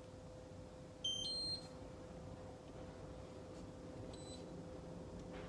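An electric stovetop beeps as its touch controls are pressed.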